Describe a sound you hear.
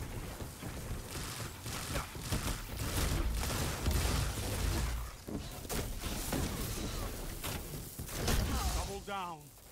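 Gunfire and energy blasts crackle in quick bursts.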